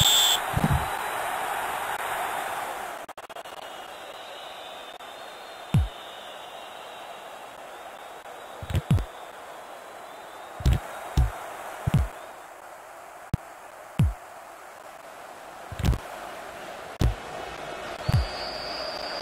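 A football is kicked with short dull thuds.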